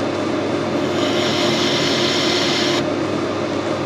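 A cutting tool scrapes against spinning metal with a hiss.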